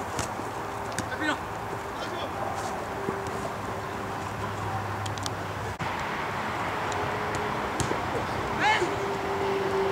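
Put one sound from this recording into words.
Young men shout across an open field in the distance.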